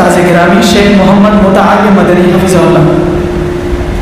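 A young man speaks loudly into a microphone, his voice carried over loudspeakers in an echoing hall.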